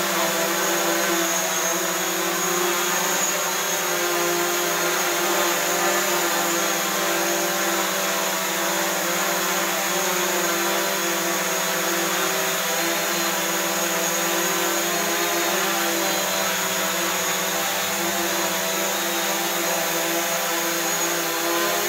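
A small drone hovers indoors with a steady, high buzzing whine.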